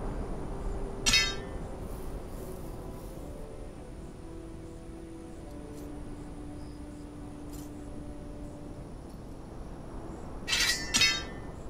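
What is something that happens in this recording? A short metallic clatter sounds as a heavy weapon is equipped.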